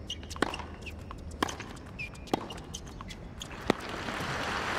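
Tennis balls are struck sharply with rackets in a quick rally.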